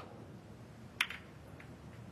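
Snooker balls knock together with a crisp clack.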